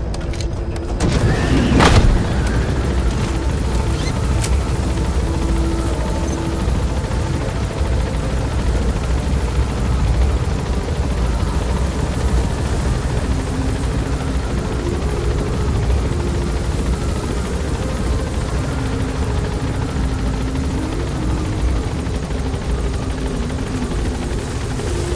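Wind rushes past an open helicopter door.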